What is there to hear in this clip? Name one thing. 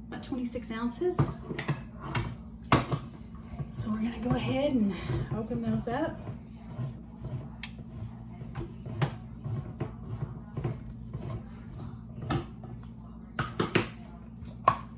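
Utensils clink and tap against cans and dishes.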